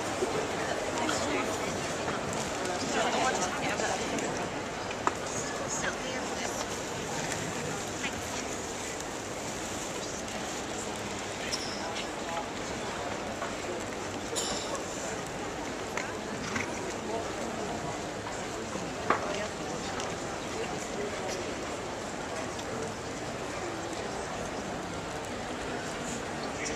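A large crowd murmurs steadily in a big echoing hall.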